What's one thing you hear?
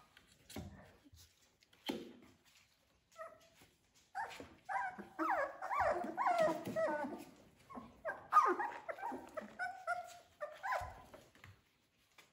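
Puppy paws scratch and thump against a low wooden board.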